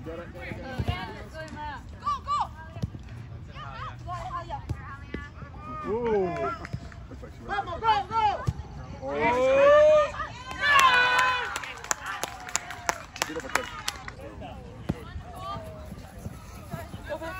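Young girls shout to each other across an open field.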